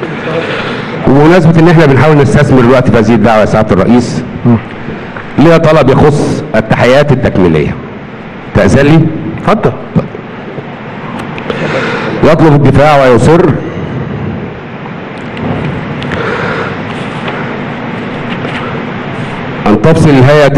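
A middle-aged man speaks forcefully into a microphone in a room with some echo.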